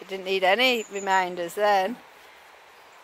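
A man speaks in a raised, sing-song voice outdoors nearby.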